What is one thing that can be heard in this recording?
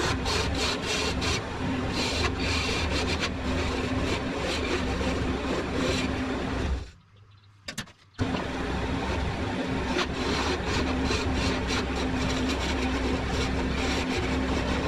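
A gouge scrapes and chatters against spinning wood.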